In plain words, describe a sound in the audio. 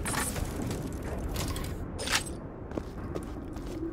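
A short chime rings as money is picked up.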